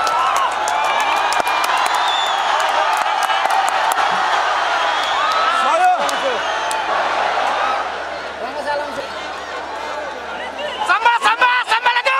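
A large stadium crowd cheers and shouts.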